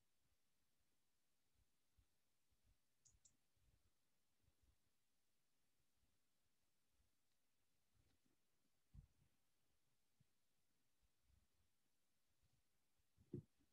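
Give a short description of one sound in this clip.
A woman speaks softly and slowly close to a microphone.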